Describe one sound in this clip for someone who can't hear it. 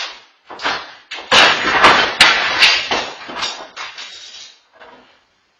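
A wooden door bangs and rattles open.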